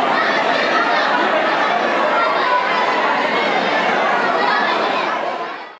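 A large crowd of people chatters and calls out loudly in a large echoing hall.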